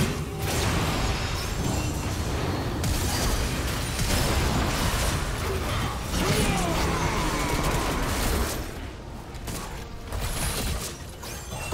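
Magic blasts, hits and crackles burst rapidly in a busy video game battle.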